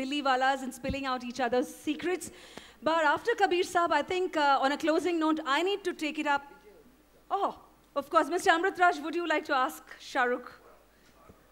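A woman speaks with animation into a microphone, heard through loudspeakers in a large hall.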